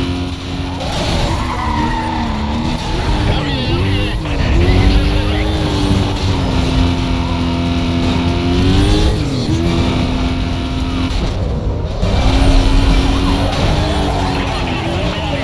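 Cars crash and scrape against each other with metallic crunches.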